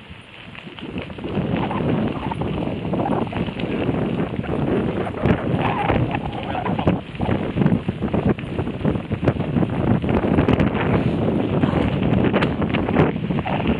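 Wind rushes past the microphone.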